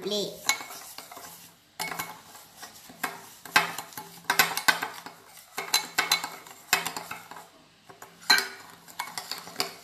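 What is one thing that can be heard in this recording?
A spoon clinks and scrapes against a glass bowl.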